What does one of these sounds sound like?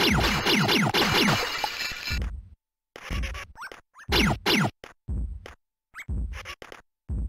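Bleeping electronic game sound effects sweep quickly down in pitch, in short bursts.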